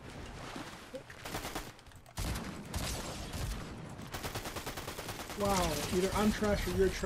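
Shotgun blasts fire in quick bursts.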